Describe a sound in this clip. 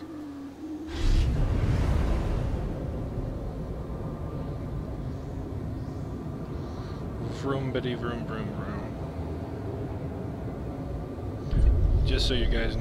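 A hovering speeder engine hums low and steady.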